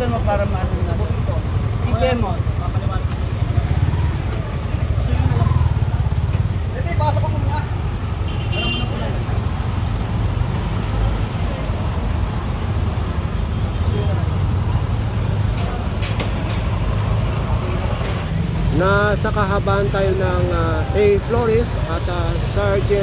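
Motorcycle engines idle with a low, steady rumble.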